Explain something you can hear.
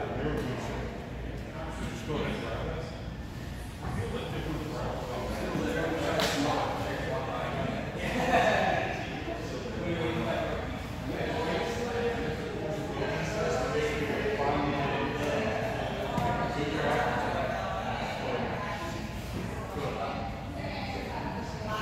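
A man talks at a distance in a large echoing hall.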